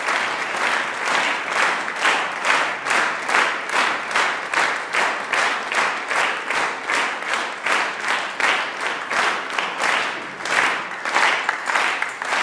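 An audience claps in steady unison rhythm.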